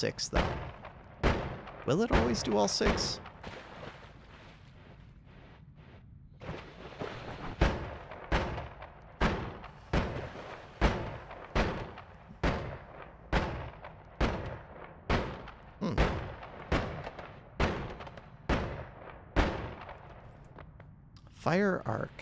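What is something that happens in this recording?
Magic bolts fire again and again with short, sharp zaps.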